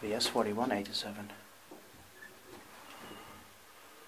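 A lift button clicks as it is pressed.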